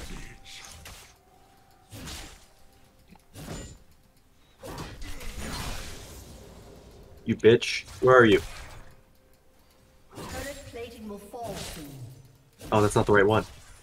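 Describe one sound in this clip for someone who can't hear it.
Spell effects burst and clash in a video game fight.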